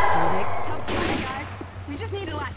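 A gunshot rings out close by.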